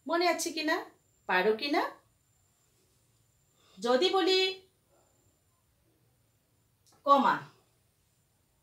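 A woman speaks clearly into a close microphone, in short phrases with pauses.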